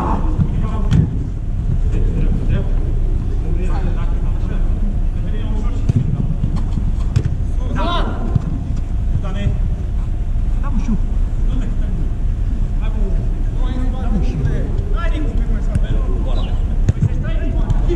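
A football is kicked with a thud that echoes.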